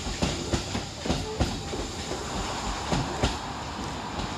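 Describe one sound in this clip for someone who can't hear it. Train wheels clatter loudly over rail joints as a train passes close by.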